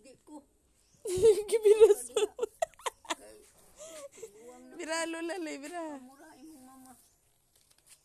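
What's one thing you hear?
An elderly woman talks nearby in a relaxed voice.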